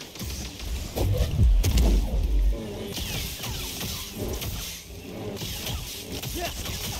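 A lightsaber hums and clashes.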